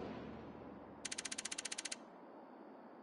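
A game's score counter ticks rapidly.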